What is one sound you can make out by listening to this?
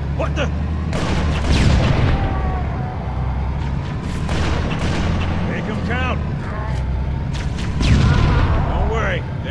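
A tank shell explodes with a loud blast.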